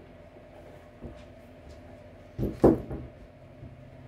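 Shoes thud softly as they are set down.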